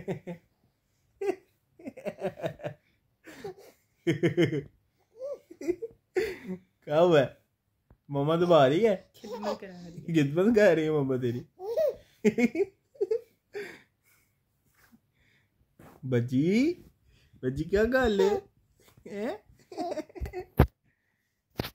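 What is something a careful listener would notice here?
A baby coos and babbles up close.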